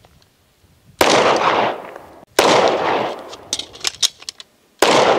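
A pistol fires loud shots that echo across open hills.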